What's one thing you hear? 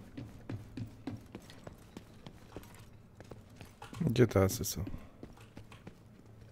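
Heavy boots run quickly across a hard floor.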